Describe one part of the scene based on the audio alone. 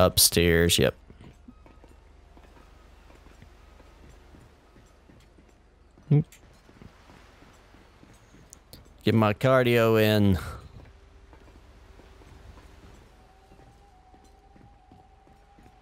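Footsteps clang on metal stairs and decking.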